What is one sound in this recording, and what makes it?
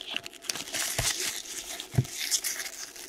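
Trading cards tap onto a stack of cards.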